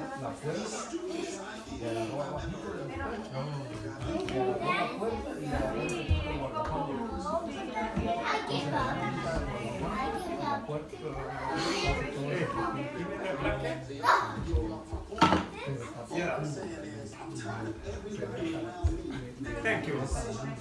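Children chatter and talk nearby.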